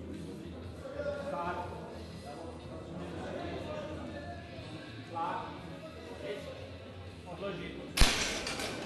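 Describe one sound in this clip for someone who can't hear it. Men call out loudly nearby.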